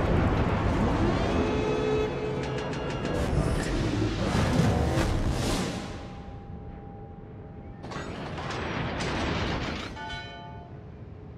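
Heavy ship guns fire in loud, booming volleys.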